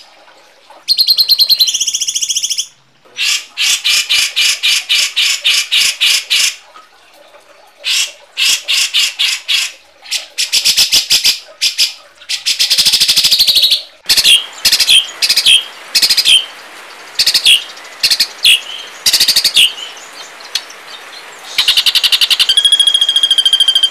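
Songbirds chirp and chatter harshly in quick bursts, close by.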